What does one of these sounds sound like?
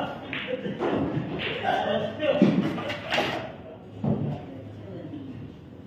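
Pool balls clack together as they are racked on a table.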